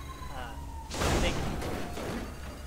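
A car crashes into something with a loud thud.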